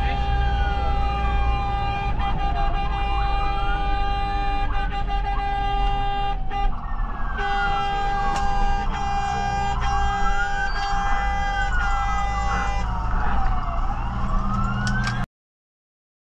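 A siren wails loudly, rising and falling.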